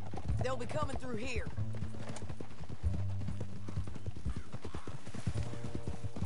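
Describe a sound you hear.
Horses' hooves clop steadily on the ground.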